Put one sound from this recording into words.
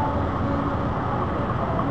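A bus engine rumbles as the bus drives past.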